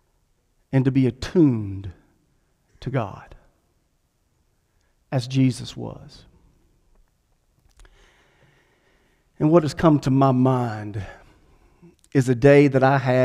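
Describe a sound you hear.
A man speaks calmly into a microphone, with pauses between phrases, in an echoing room.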